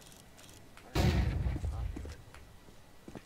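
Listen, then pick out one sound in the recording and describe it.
A sniper rifle fires a single loud, booming shot.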